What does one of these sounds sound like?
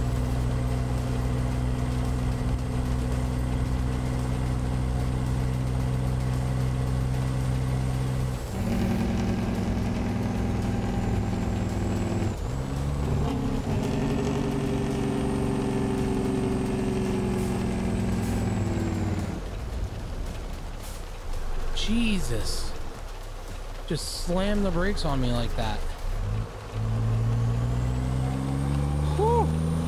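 A truck engine drones steadily, its pitch dropping and rising between gear changes.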